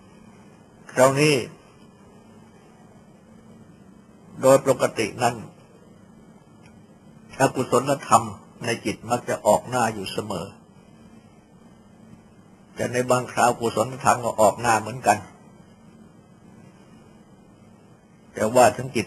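An elderly man speaks calmly in short phrases with pauses.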